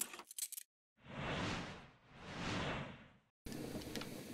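A soft whooshing chime plays as an item is collected.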